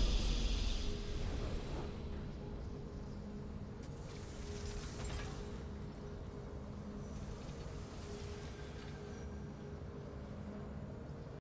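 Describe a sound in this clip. A soft victory music theme plays in a video game.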